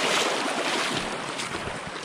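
Water splashes and gurgles over rocks close by.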